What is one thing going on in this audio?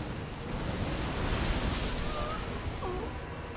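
Lightning crackles and roars.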